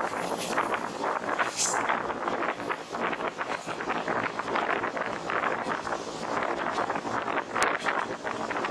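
Wind buffets loudly and gusts outdoors.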